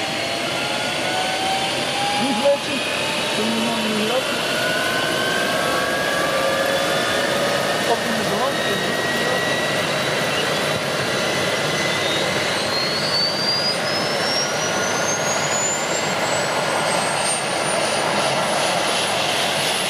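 A helicopter's turbine engine whines and rises steadily in pitch.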